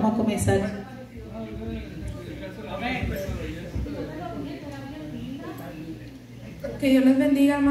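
A woman speaks into a microphone over a loudspeaker in an echoing hall.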